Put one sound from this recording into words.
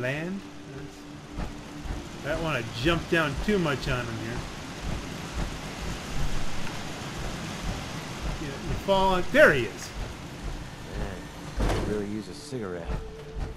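Heavy metallic footsteps clank on metal stairs and grating.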